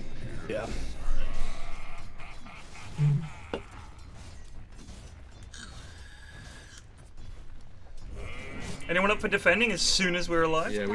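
Game battle effects clash and whoosh.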